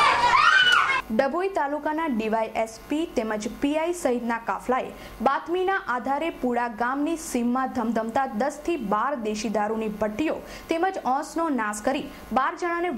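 A young woman reads out calmly and clearly into a microphone.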